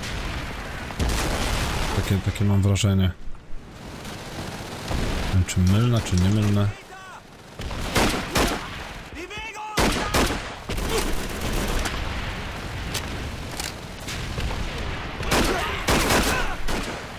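Rifle shots bang sharply.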